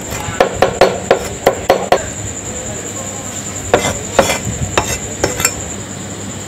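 A knife chops rapidly on a cutting board.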